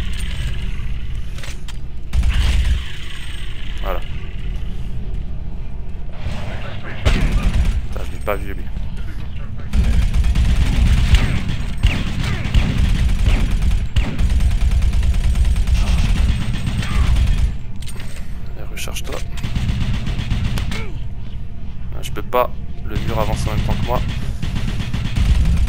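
A low, rumbling drone hums steadily in a video game.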